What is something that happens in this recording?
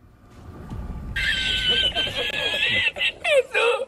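A middle-aged man laughs loudly and heartily.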